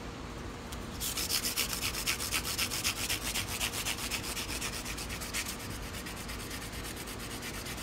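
A metal file rasps in quick back-and-forth strokes.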